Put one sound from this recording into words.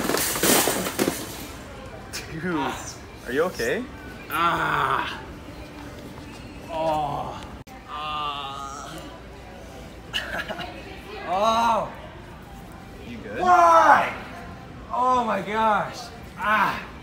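A young man groans and laughs loudly close by.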